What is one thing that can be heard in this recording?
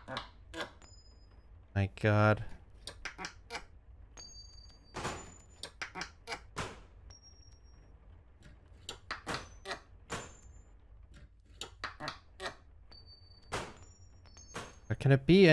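A hammer strikes nails into wood in quick, repeated blows.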